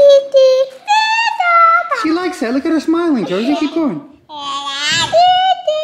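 A baby girl giggles and squeals close by.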